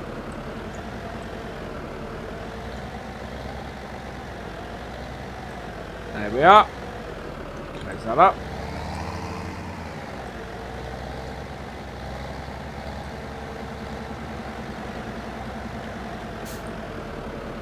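A tractor engine hums steadily throughout.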